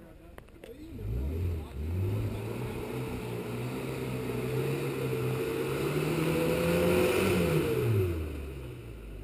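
An off-road buggy engine revs hard as it climbs a rocky trail under load.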